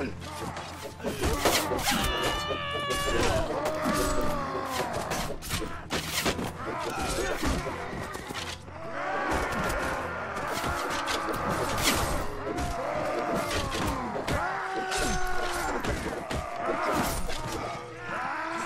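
Swords clash and clang in a battle.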